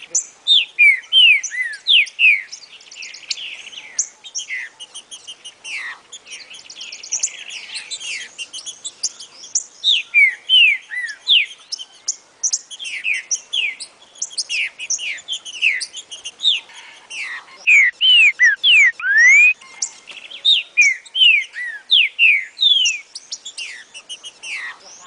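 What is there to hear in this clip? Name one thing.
A small songbird sings in quick, high, sweeping whistled phrases, close by.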